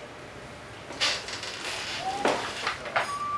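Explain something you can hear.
An electronic toy beeps and plays short tones.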